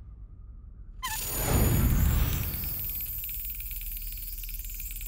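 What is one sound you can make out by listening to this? A lock mechanism turns with a rising whoosh.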